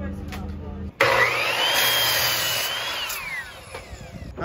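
A power miter saw whines and cuts through wood.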